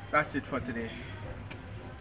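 A young man speaks close by.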